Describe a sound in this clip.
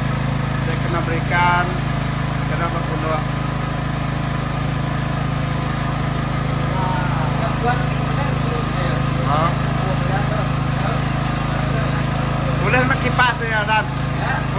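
A man talks nearby in a calm, conversational way.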